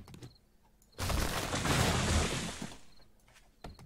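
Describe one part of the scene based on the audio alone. A tree crashes down with a loud rushing burst.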